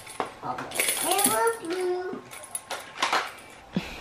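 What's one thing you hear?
A tambourine jingles as it is shaken.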